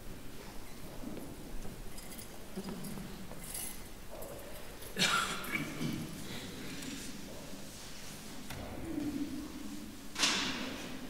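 An elderly man speaks quietly in a large echoing room.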